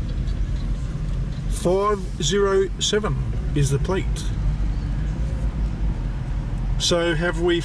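A sports car's engine idles with a deep, steady rumble close by.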